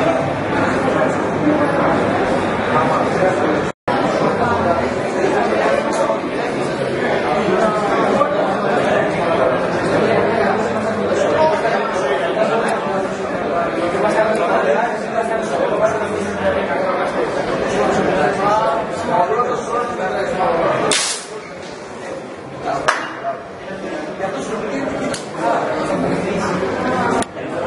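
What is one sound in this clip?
A crowd chatters loudly in an echoing hall.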